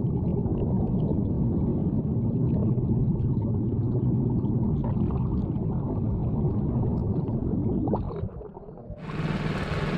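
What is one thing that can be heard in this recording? An outboard propeller churns underwater with a muffled, bubbling rumble.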